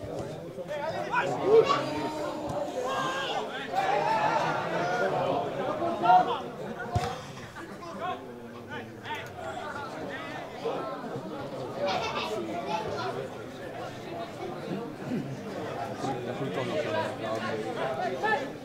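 A crowd of spectators murmurs and calls out at an outdoor football match.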